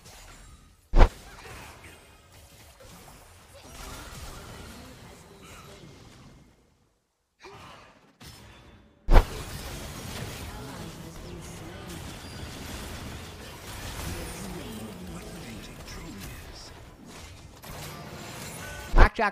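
Game spell effects whoosh and clash.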